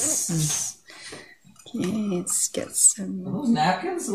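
A metal spoon scrapes and clinks against a dish.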